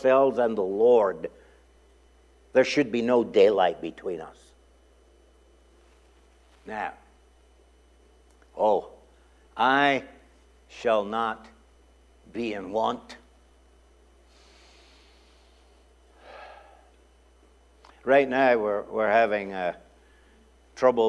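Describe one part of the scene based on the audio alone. An older man speaks with animation into a microphone, with long pauses.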